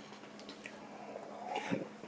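A man gulps a drink.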